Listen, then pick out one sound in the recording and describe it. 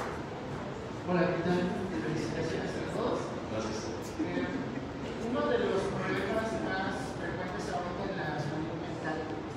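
A man speaks to an audience through a microphone, echoing in a large hall.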